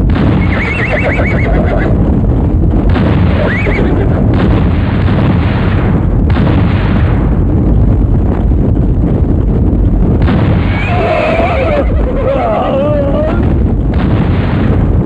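Horses gallop over dirt.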